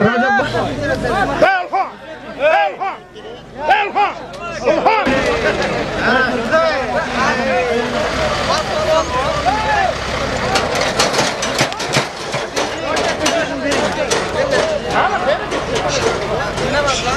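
A large crowd of men shouts and calls out outdoors.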